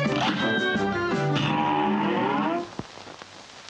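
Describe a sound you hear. Jaunty game music plays and then cuts off.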